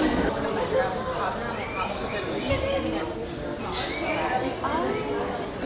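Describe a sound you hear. Men and women chatter in the background.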